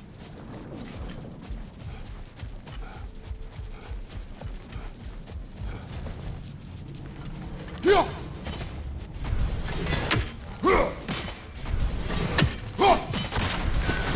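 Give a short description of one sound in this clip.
Heavy footsteps crunch quickly over sand.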